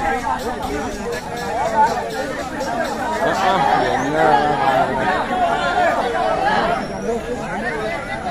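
A crowd of men talks and shouts together outdoors.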